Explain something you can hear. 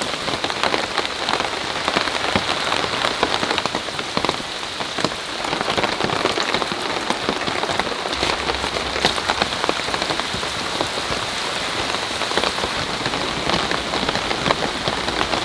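Heavy rain falls steadily outdoors.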